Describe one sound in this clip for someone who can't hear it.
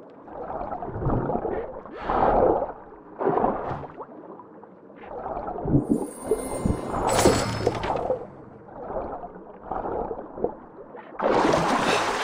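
Muffled underwater swishes of a swimmer's strokes come and go.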